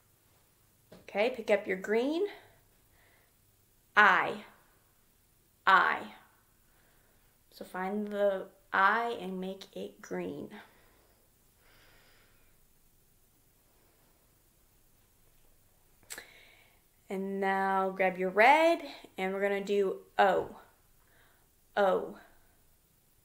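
A young woman speaks calmly and slowly into a nearby microphone, with pauses.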